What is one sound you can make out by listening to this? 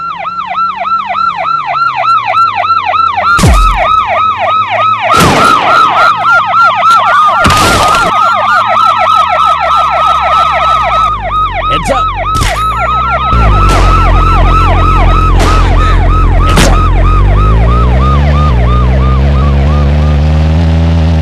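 A police siren wails rapidly and steadily.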